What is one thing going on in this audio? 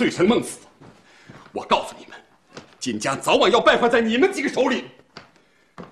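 A young man speaks tensely.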